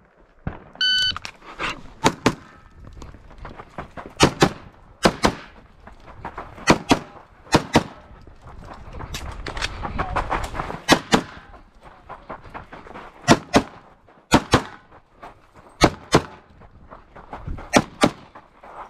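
A pistol fires sharp shots outdoors, one after another.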